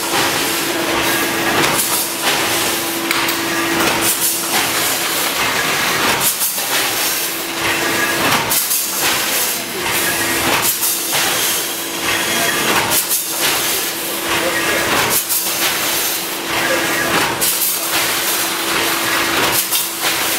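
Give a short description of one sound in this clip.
A packing machine whirs and clatters in a steady cycle.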